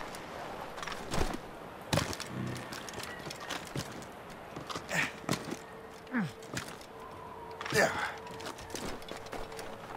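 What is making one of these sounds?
Hands scrape and thud against rock and bark while climbing.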